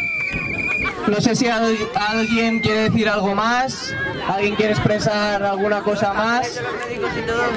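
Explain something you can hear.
A young man speaks loudly through a microphone and loudspeaker.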